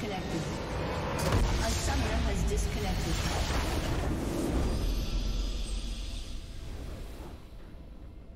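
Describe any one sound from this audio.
Magic blasts and explosions crash loudly.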